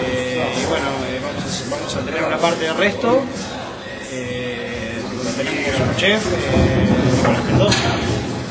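A young man talks close by, in a lively voice.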